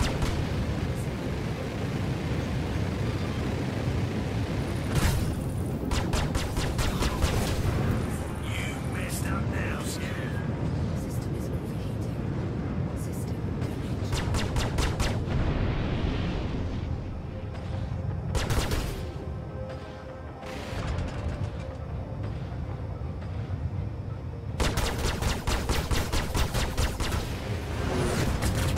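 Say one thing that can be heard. A spaceship engine hums with a low, steady rumble.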